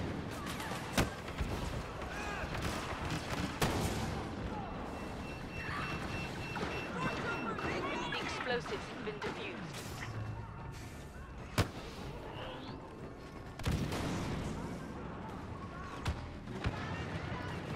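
Blaster shots crack sharply now and then.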